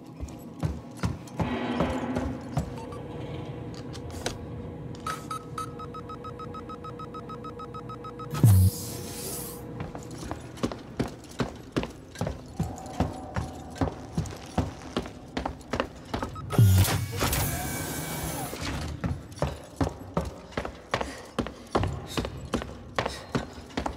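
Footsteps tread steadily on a metal floor.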